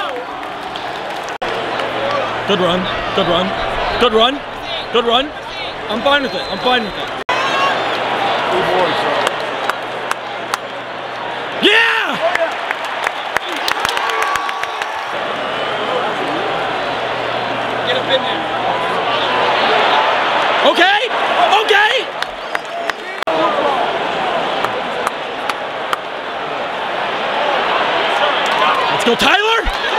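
Nearby fans shout and cheer loudly.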